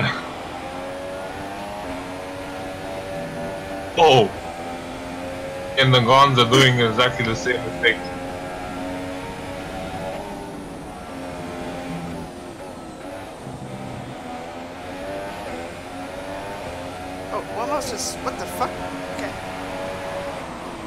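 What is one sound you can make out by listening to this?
A racing car engine whines at high revs, rising and falling in pitch.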